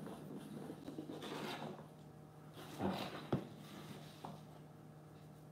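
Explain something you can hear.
Cardboard pieces rustle and scrape as they are handled.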